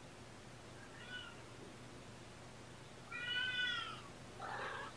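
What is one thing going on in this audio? A kitten meows loudly a few times.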